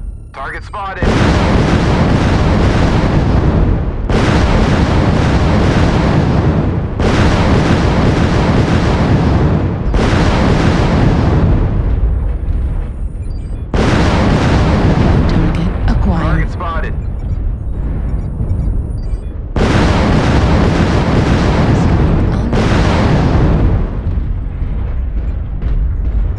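Heavy weapons fire in long, roaring bursts, each starting suddenly.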